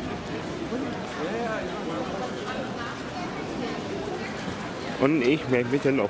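A crowd of people chatters in the background outdoors.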